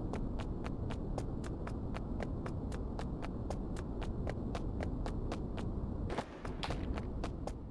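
Heavy boots thud quickly and evenly while running.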